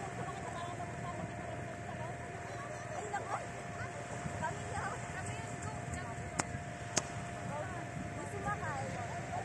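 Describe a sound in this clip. Small waves lap gently on the shore.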